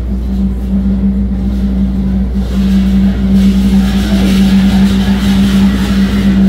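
Large drums pound in a steady, driving rhythm.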